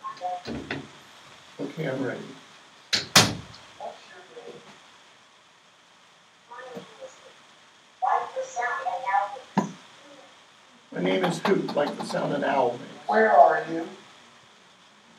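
An older man speaks calmly and in pauses.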